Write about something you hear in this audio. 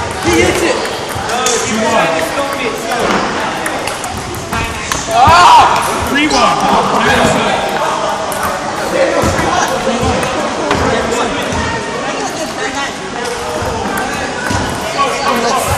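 A table tennis ball clicks back and forth off bats and the table in a large echoing hall.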